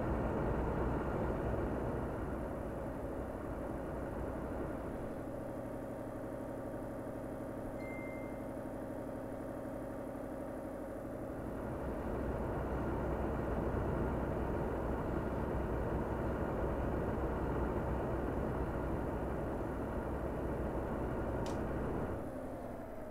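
A truck engine rumbles steadily as it drives along a road.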